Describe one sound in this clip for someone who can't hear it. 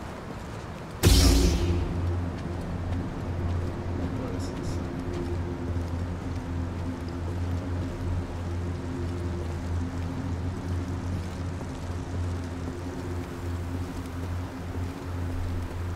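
A lightsaber hums steadily with a low drone.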